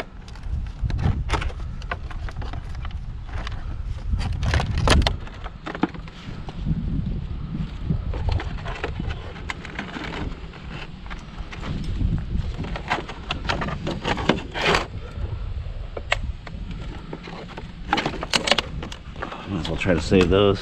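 Gloved hands handle and knock plastic and metal parts, with scattered clicks and clatters.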